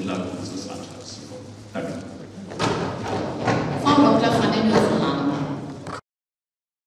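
A middle-aged man speaks steadily into a microphone.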